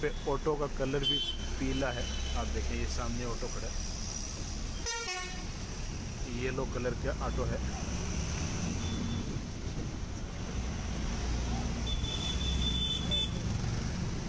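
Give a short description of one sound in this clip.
Traffic passes by on the road outside.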